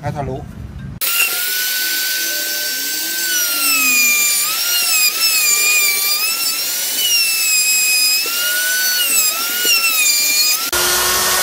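A router whines loudly, its pitch dipping as it cuts wood.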